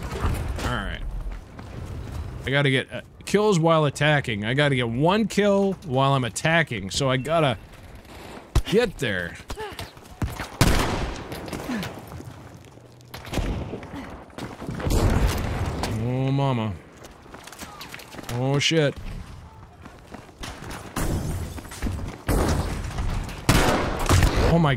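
Gunshots crack and boom in quick bursts.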